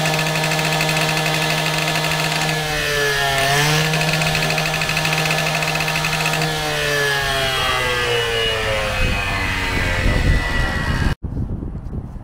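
A petrol cut-off saw engine runs loudly, revving up and then winding down.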